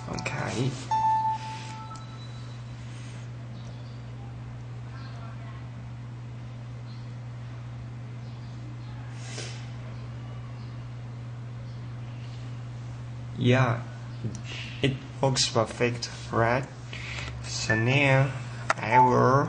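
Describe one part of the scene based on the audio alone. A handheld game console beeps as its buttons are pressed.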